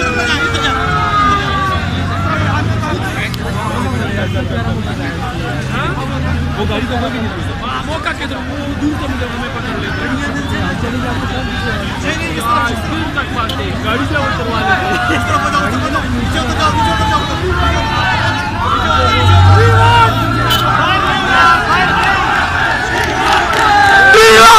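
A large crowd of young men talks and shouts outdoors.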